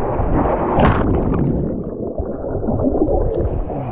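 Bubbles gurgle and churn underwater.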